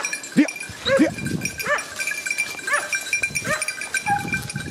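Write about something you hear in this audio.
Dry grass and leaves rustle under a running dog.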